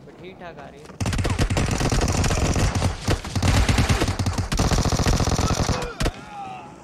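Automatic rifle fire rattles in rapid bursts.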